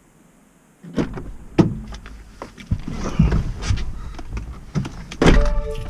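A man climbs into a car seat with rustling and thumps.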